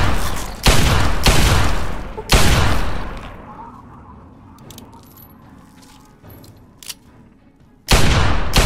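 A revolver fires loud shots that echo away.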